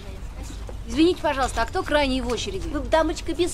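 A young woman speaks anxiously close by.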